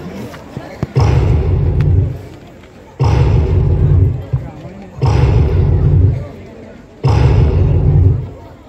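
Loud music with heavy beats plays through loudspeakers in repeated bursts.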